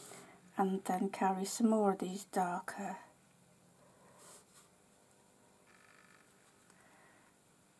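A fine brush strokes softly across paper.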